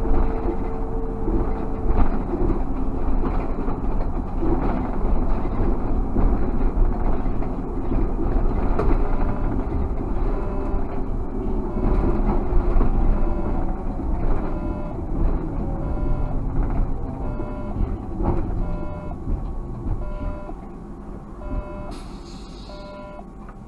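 A car's engine hums and its tyres roll steadily on the road, quieting as it slows near the end.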